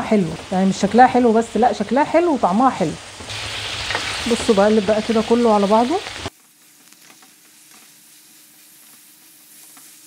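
A wooden spoon stirs and scrapes food in a metal pan.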